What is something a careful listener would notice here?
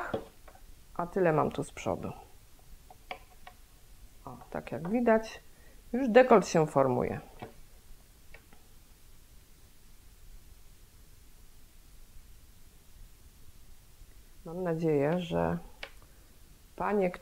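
A middle-aged woman speaks calmly and close to a microphone, in short phrases with pauses.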